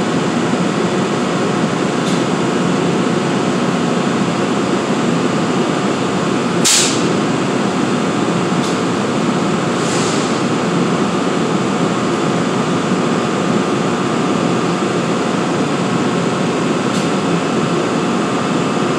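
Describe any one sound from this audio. A train's engine idles with a loud, steady rumble and hum in a large echoing space.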